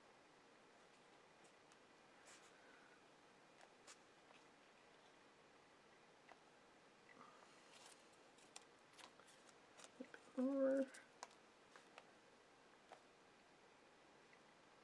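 Paper rustles and slides under hands.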